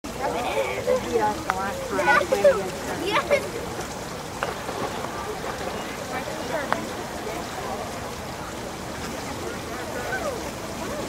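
Water splashes as swimmers swim laps.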